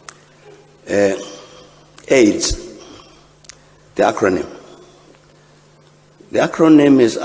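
An elderly man speaks slowly and deliberately into a microphone in a large echoing hall.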